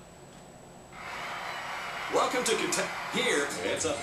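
A crowd applauds through a television speaker.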